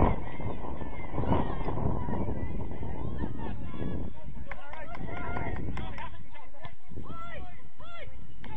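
Young men shout to each other from a distance across an open field.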